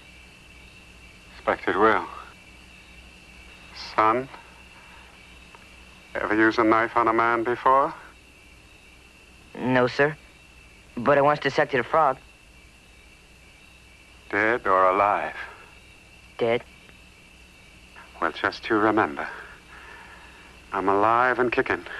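A man speaks weakly and hoarsely, close by.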